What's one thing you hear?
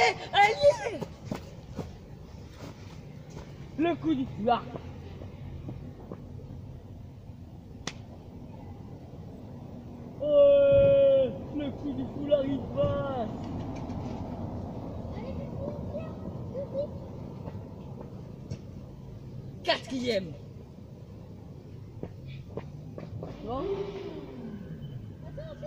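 A boy shouts and calls out from a short distance outdoors.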